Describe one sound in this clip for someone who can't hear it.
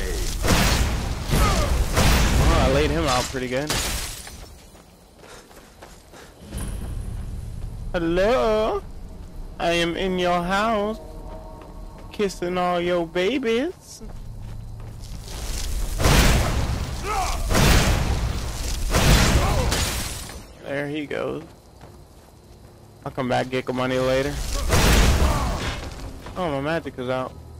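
A magic spell crackles and roars in loud bursts.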